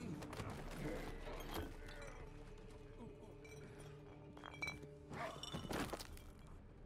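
A man talks into a nearby microphone.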